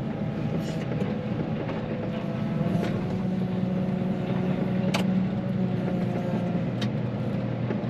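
A snow plough blade scrapes along the snowy road.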